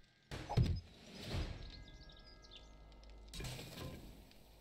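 A short chime rings out.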